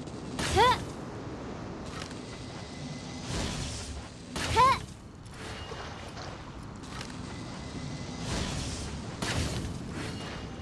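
Magic bow shots whoosh and burst in short bright blasts.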